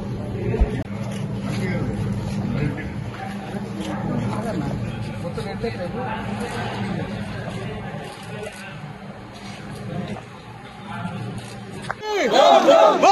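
A crowd of men and women murmurs quietly nearby.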